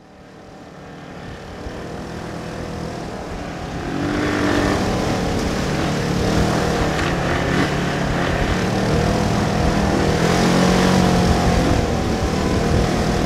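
A utility vehicle's engine roars as it drives closer, growing louder.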